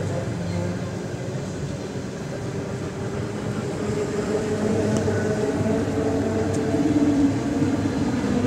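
An electric train's motors whine steadily as it speeds up.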